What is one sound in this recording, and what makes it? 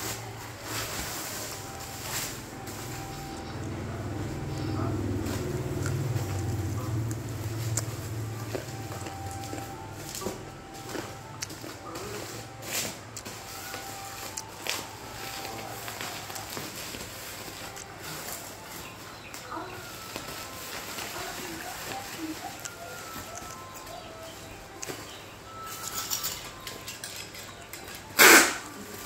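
Plastic sheeting crinkles and rustles as it is handled.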